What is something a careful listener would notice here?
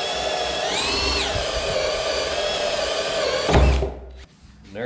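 A cordless drill whines loudly as it bores through plastic.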